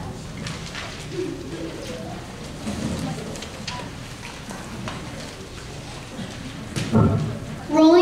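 Children murmur and shuffle quietly in the background.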